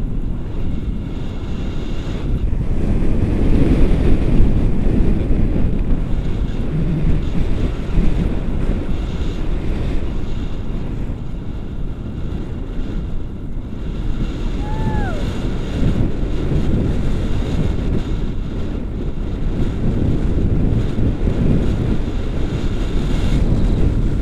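Strong wind rushes and buffets loudly throughout.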